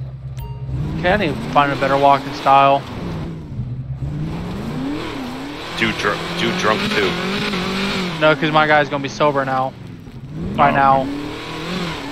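Car tyres screech as they skid and spin on loose ground.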